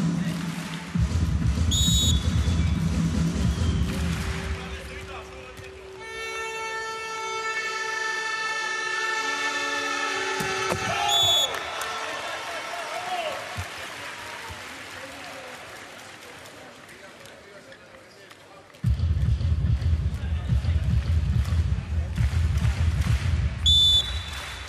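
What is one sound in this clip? A large crowd cheers and drums loudly in an echoing arena.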